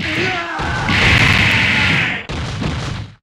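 A fiery blast roars and hisses.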